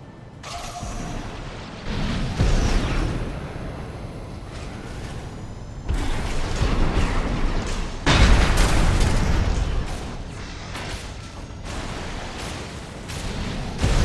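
Water splashes and churns under a large machine's feet.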